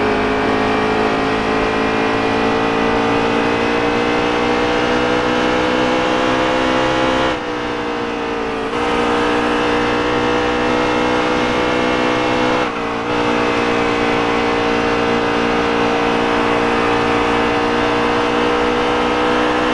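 A V8 stock car engine roars at high revs in a racing game.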